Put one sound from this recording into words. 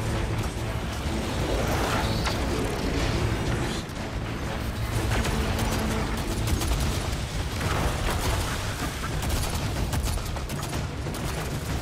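Rapid gunfire crackles and pops.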